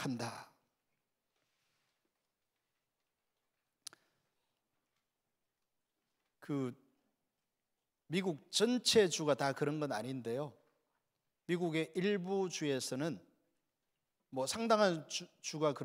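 A middle-aged man preaches with emphasis through a microphone, pausing between phrases.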